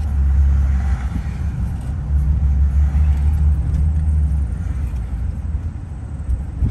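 A car engine drones steadily from inside a moving vehicle.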